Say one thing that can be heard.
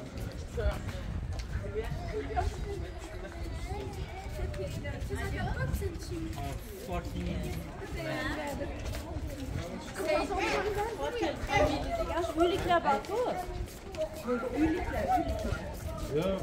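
Men talk calmly nearby.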